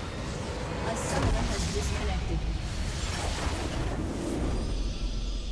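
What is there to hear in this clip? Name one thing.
A deep magical explosion booms and rumbles.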